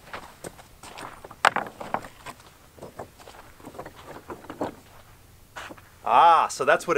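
Loose rocks clatter and crunch under footsteps.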